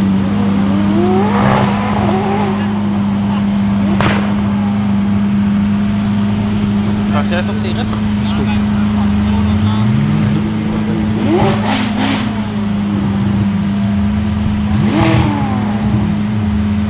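A sports car engine revs hard in short, sharp bursts.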